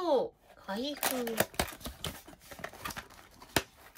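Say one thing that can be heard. Cardboard scrapes and rustles as a small box is torn open.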